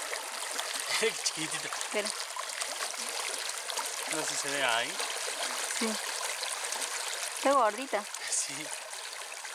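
A man speaks calmly up close.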